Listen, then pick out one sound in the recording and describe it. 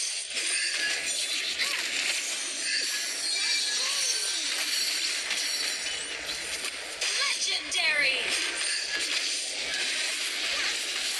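Game battle effects clash, zap and explode without pause.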